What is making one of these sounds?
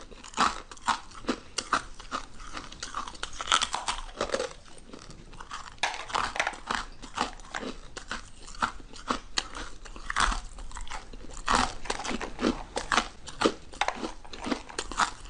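Crisp crunching and smacking of eating sounds close to a microphone.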